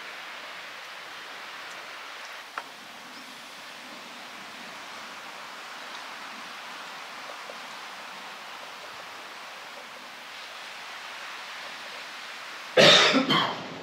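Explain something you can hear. A soft, steady breeze blows outdoors.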